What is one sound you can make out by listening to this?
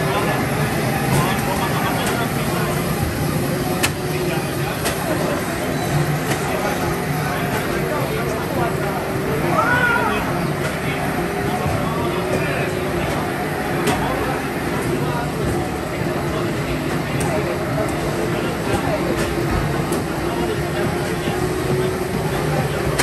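Arcade game sound effects and music play from loudspeakers.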